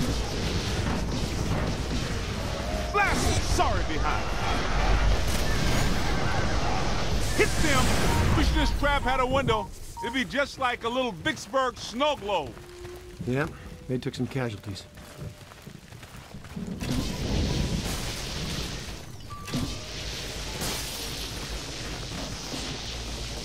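Energy beams crackle and roar loudly.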